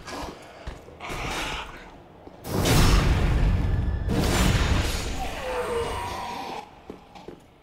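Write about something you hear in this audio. A blade slashes and strikes with heavy thuds.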